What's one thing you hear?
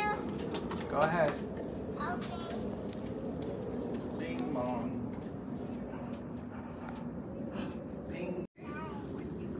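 Young children call out excitedly.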